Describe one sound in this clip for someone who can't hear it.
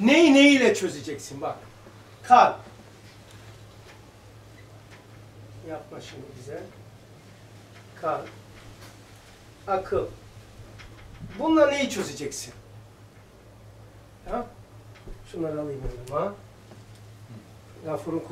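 An elderly man speaks calmly in short phrases, with pauses.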